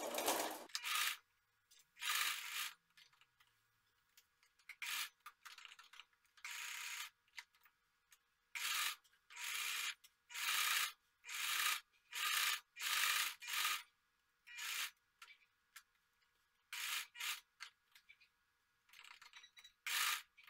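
A sewing machine whirs in short, quick bursts of stitching.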